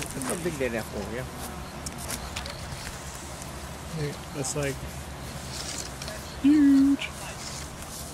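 Leaves rustle as a hand pulls at an apple on a branch.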